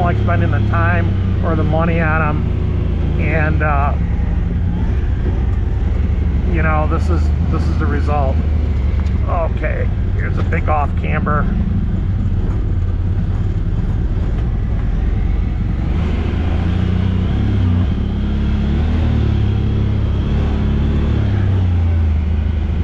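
An off-road vehicle's engine rumbles steadily.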